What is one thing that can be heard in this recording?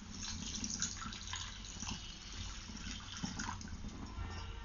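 Water pours into a hot pan and sizzles.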